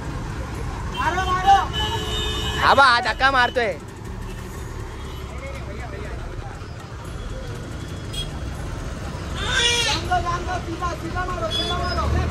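Men shout loudly nearby.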